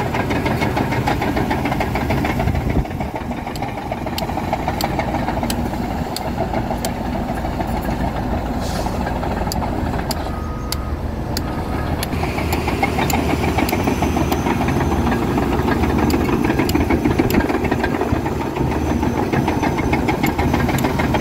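A bulldozer engine rumbles steadily nearby.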